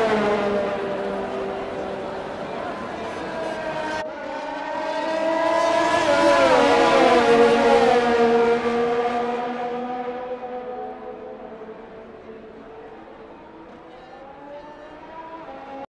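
A racing car engine whines at high revs, rising and falling in pitch as the car passes close by and fades away.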